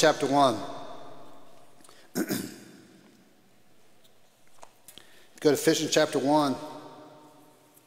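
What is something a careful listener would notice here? An elderly man speaks calmly through a microphone in an echoing hall.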